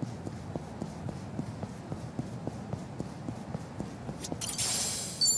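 Quick footsteps thud on pavement as someone runs.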